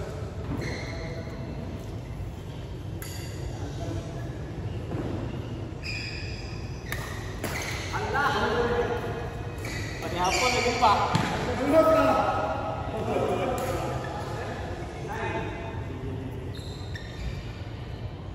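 Shuttlecocks are struck with sharp racket pops in a large echoing hall.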